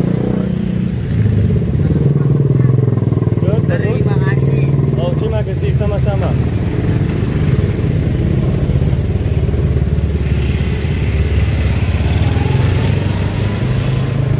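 A scooter engine hums while pulling a passenger trolley.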